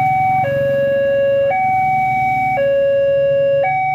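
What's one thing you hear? A motor scooter drives past close by.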